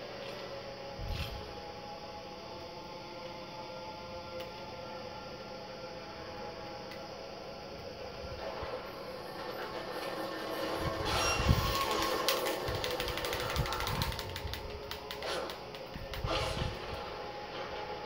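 Heavy thuds and crashes boom from a television speaker.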